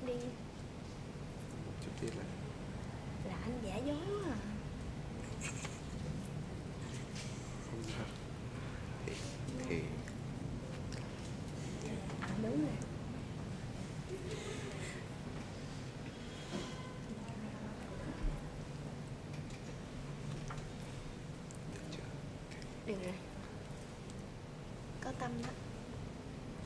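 A young woman talks and laughs playfully close by.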